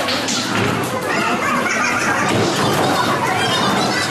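A bowling ball rolls down a lane and crashes into pins.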